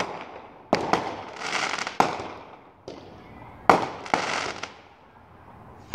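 Fireworks crackle and sizzle after bursting.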